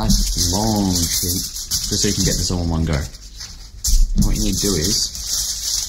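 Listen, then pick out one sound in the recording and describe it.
Foil crinkles as it is handled.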